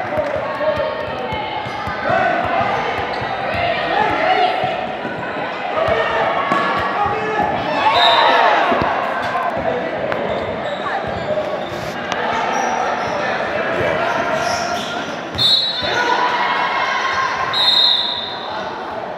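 Voices of players and onlookers echo around a large indoor gym.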